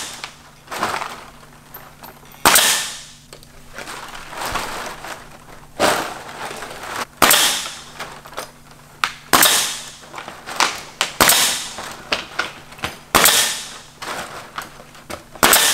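A pneumatic nail gun fires with sharp bangs and bursts of hissing air.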